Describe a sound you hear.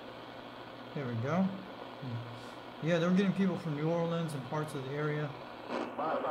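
A man's voice speaks faintly through a radio loudspeaker amid static.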